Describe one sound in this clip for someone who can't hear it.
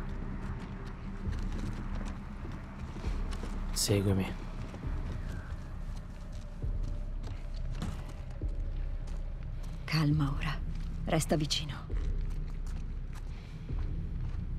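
Soft footsteps creep across a hard floor.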